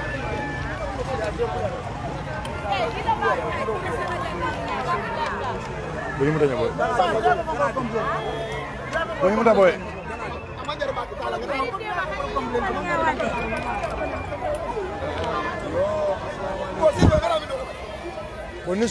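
A crowd of men and women shouts and chatters loudly outdoors.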